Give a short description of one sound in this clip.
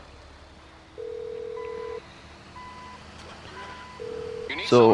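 A phone call rings out with a ringback tone.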